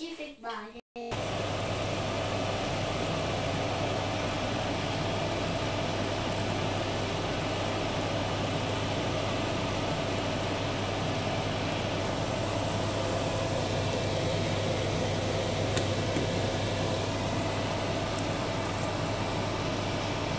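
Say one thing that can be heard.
A pot of thick stew bubbles and simmers softly.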